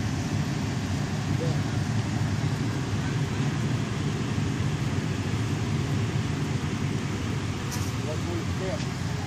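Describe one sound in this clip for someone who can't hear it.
A fire engine idles nearby with a steady low rumble.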